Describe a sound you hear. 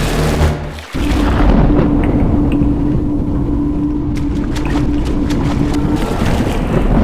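A swirling portal rushes and roars.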